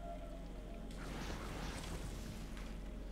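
A magical zap whooshes and sparkles.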